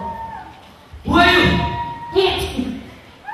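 A man speaks loudly and with emotion into a microphone.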